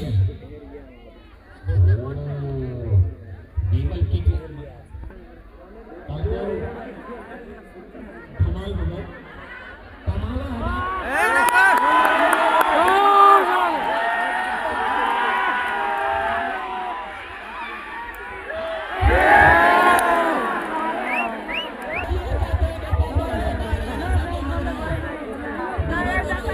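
A large crowd cheers and shouts loudly outdoors.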